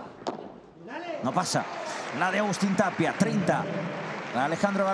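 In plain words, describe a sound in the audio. A crowd cheers and applauds in a large arena.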